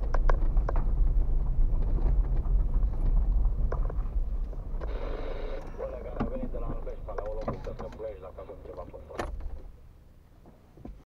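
A car engine rumbles low and steady from inside the car.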